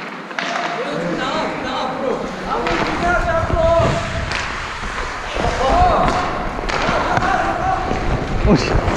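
Young players shout in the distance across an echoing rink.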